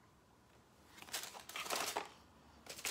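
A paper card rustles and slides into a cardboard box.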